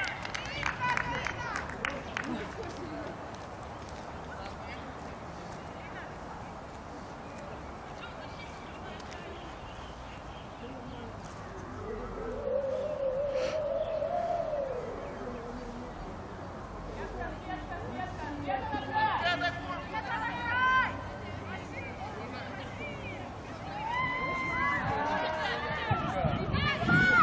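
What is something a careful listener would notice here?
Young women shout and call out across an open field outdoors.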